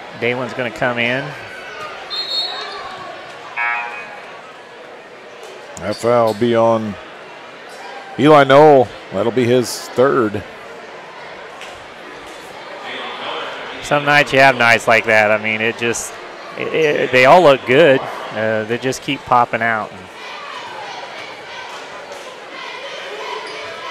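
A crowd murmurs in a large echoing gym.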